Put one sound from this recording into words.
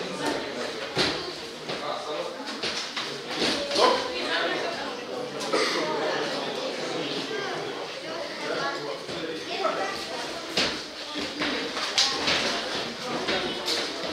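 Men talk in the background.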